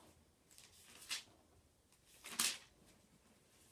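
Paper rustles as a page is turned.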